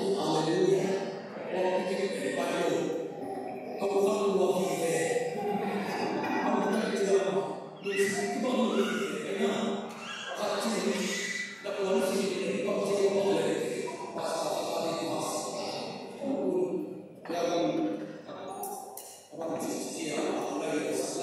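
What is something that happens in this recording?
A middle-aged man speaks with animation into a microphone in a room with some echo.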